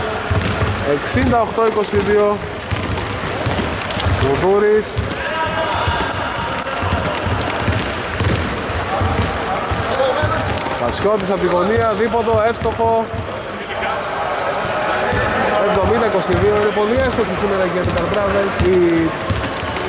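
Men shout and call out to each other across the court.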